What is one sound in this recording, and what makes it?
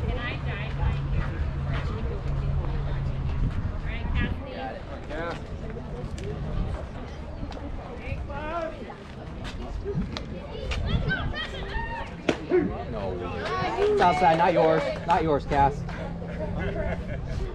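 Young girls shout and cheer across an open field.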